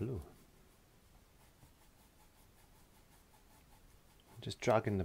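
A brush scrubs softly across a canvas.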